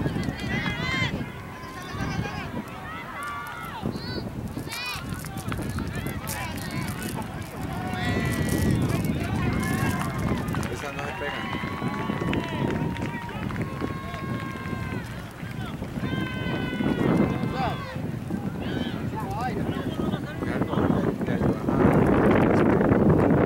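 Spectators call out and cheer from the sideline.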